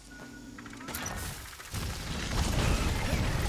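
A smoky blast rumbles and hisses.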